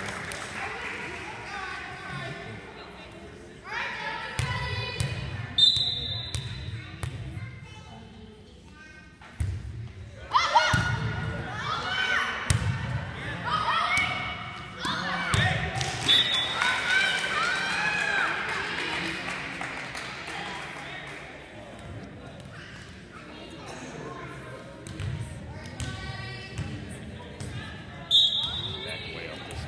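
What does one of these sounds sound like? Young girls shout and cheer in a large echoing gym.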